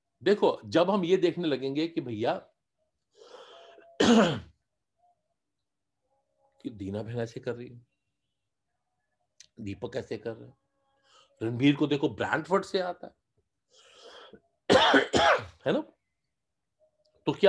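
A middle-aged man speaks with animation close to the microphone, in bursts with pauses.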